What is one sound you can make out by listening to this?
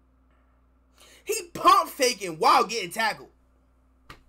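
A man exclaims loudly and excitedly close by.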